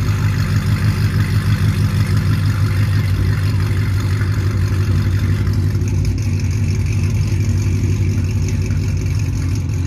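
A sports car engine idles with a deep, throbbing exhaust rumble close by.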